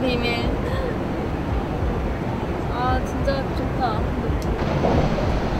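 Young women talk and laugh casually nearby.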